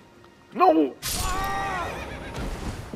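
A body lands hard on rock with a heavy thud.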